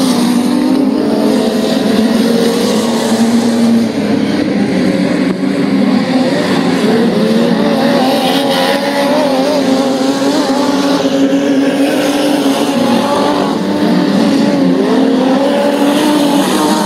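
Race car engines roar loudly, revving up and down as they circle.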